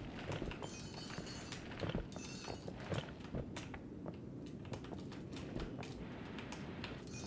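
Rapid clicking thuds sound as blocks are dug out in a game.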